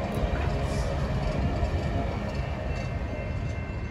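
Railway cars rumble past on the tracks close by.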